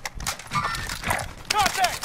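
A gun fires in quick, sharp shots.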